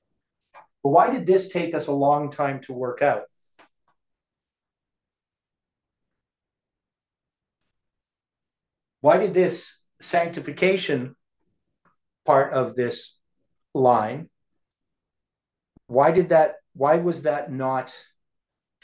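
An elderly man speaks calmly and close by, explaining in short phrases.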